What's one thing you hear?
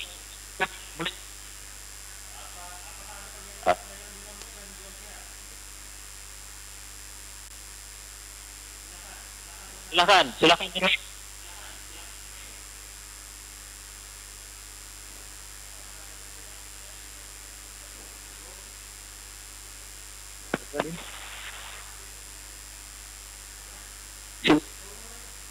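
A young man speaks close into a phone, heard through a crackly call line.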